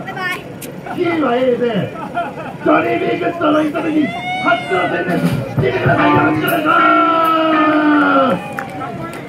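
A crowd of young men and women sings and shouts loudly outdoors.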